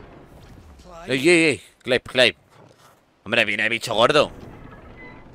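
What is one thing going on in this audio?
A man speaks into a microphone.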